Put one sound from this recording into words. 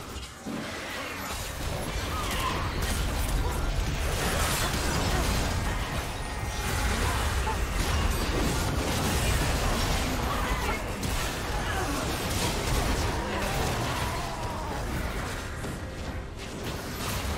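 Game spell effects burst and crackle during a fight.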